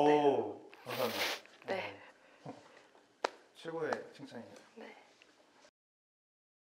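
A young man speaks casually and nearby.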